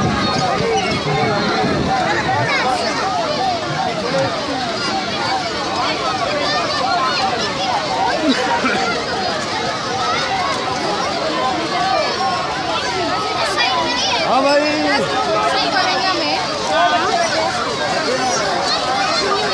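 A dense crowd of children and adults chatters and shouts all around.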